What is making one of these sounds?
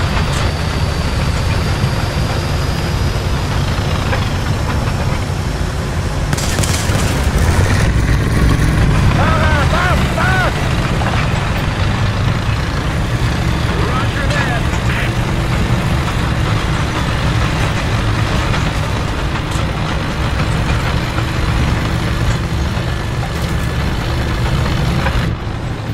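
A diesel tank engine rumbles as the tank drives.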